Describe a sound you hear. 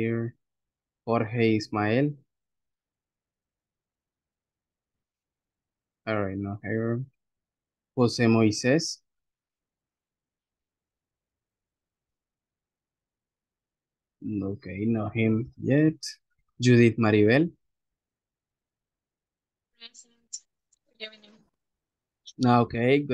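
A man speaks calmly in short phrases over an online call, with pauses between them.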